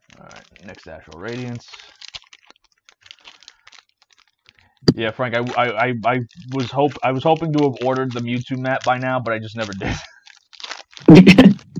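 Foil card packs crinkle in a man's hands.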